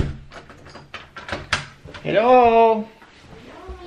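A young man speaks close by, with animated ups and downs.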